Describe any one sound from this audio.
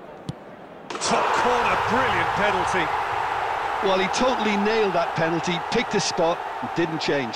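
A crowd roars and cheers loudly.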